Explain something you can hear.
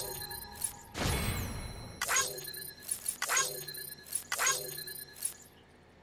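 Bright electronic chimes ring out as a score counts up.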